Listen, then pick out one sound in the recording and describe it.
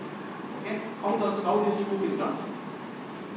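A man speaks briefly in a room.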